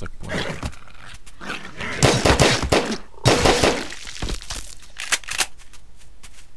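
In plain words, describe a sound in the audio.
Blows land in a noisy fight between creatures.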